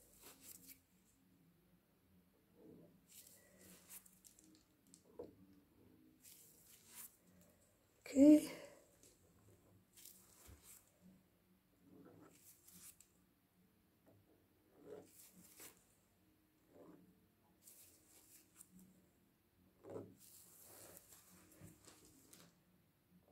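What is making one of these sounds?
A small tool scrapes softly across wet paint.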